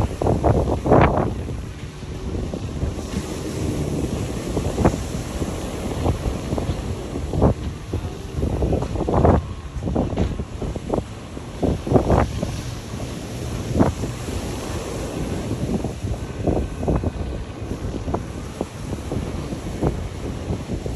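Small waves wash gently onto a shore, outdoors in gusty wind.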